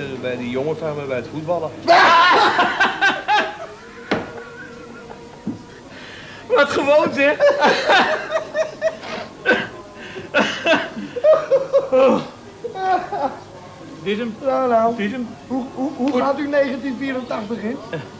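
Middle-aged men talk and joke together close by.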